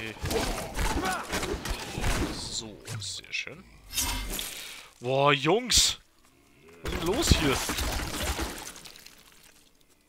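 Creatures shriek and die with wet crunches.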